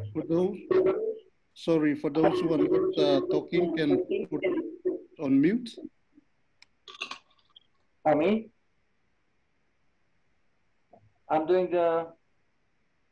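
A middle-aged man talks calmly over an online call.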